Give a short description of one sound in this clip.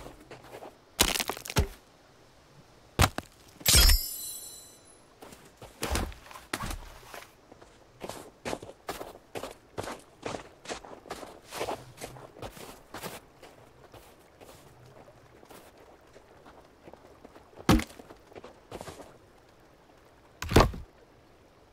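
Wooden logs thud as they are dropped.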